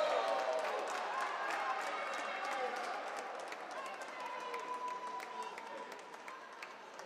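A crowd cheers and shouts in a large echoing hall, slowly fading.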